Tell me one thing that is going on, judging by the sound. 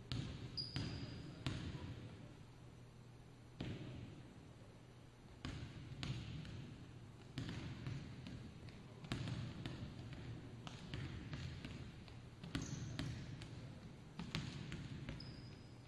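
A basketball bounces on a hard floor, echoing through a large hall.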